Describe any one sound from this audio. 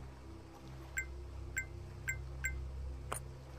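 Short electronic beeps sound as menu options are chosen.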